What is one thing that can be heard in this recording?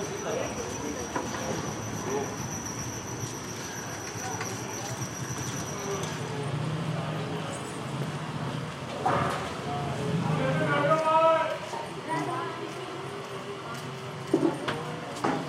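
A hand pump creaks as its handle is worked.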